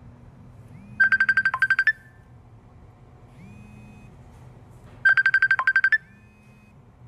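A phone rings in short bursts.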